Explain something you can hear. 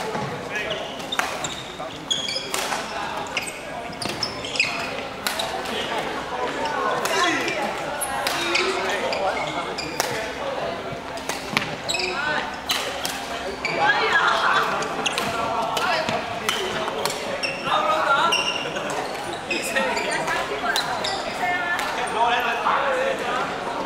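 Rackets strike a shuttlecock with sharp pops, echoing through a large hall.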